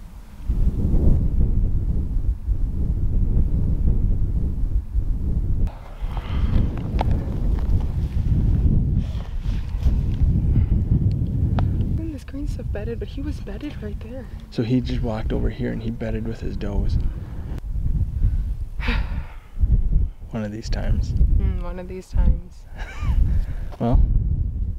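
Wind blows across open ground, buffeting the microphone.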